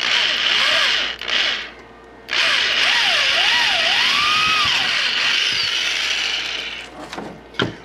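A drill press whirs loudly as it bores through metal.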